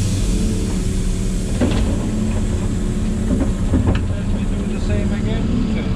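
Soil pours with a rumble and thuds into a metal truck bed.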